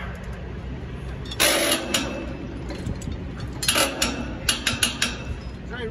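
A wrench clanks against steel bolts.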